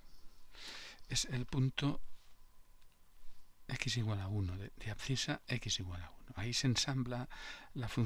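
A man speaks calmly into a close microphone.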